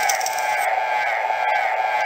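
A cartoon character screams in a shrill, piercing voice.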